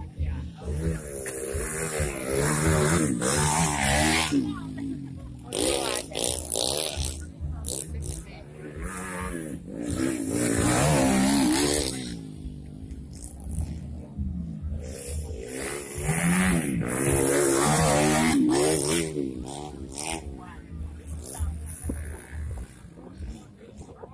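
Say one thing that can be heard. A dirt bike engine revs loudly and whines past close by.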